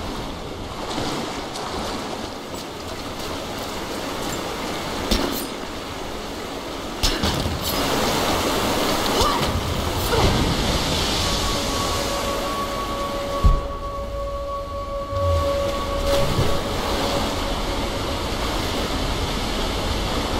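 Water splashes as someone wades through a pool.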